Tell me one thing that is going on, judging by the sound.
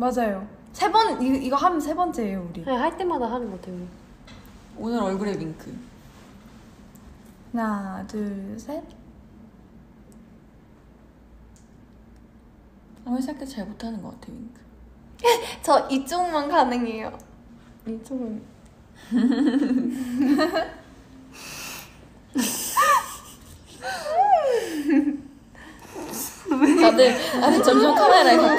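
Young women talk in turns, close and animated.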